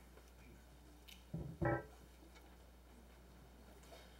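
Clothing rustles and thumps against small clip-on microphones as they are fastened.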